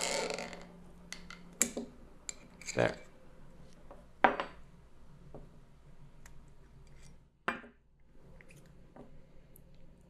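Metal and plastic parts click and clack as they are handled.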